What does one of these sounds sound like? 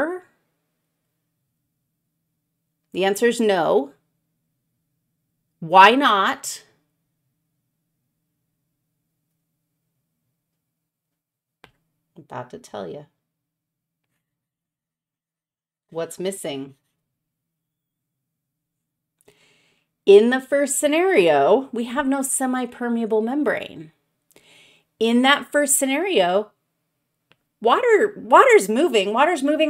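A woman speaks into a close microphone in short bursts with long pauses, becoming more animated.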